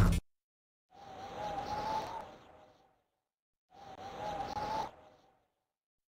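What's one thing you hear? A video game chime swooshes as a menu slides in.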